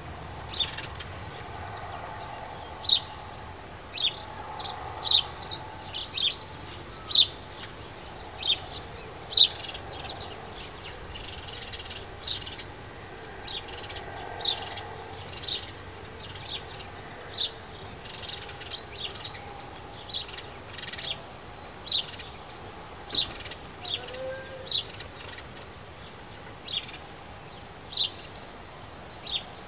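A small bird chirps sharply and twitters close by, again and again.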